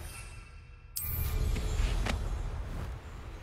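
A broom takes off with a swoosh.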